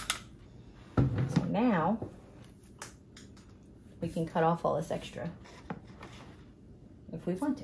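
A woman talks calmly up close.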